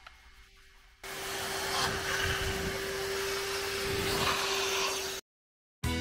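A vacuum nozzle scrapes and sucks over carpet.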